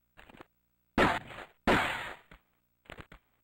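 Pistol shots ring out with a short echo.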